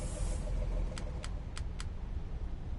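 Menu selections click several times in quick succession.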